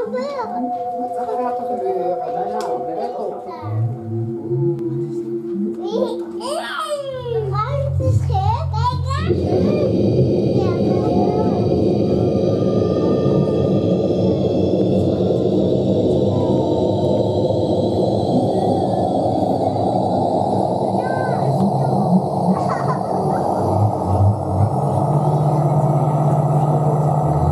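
Electronic music plays loudly through speakers, building from sparse sweeping tones into a dense, steady drone with deep bass.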